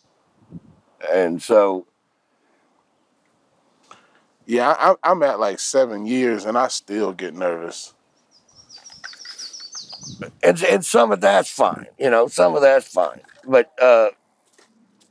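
An elderly man talks calmly outdoors, close by.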